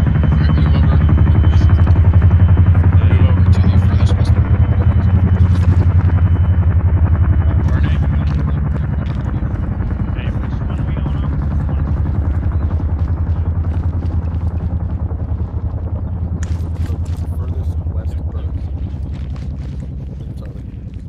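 Aircraft rotors thrum with a loud, steady, pulsing drone that slowly fades.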